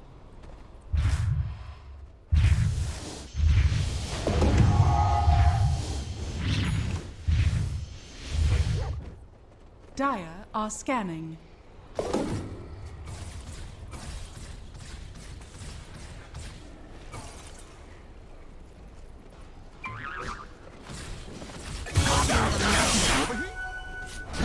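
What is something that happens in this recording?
Magic spells blast and crackle in a video game fight.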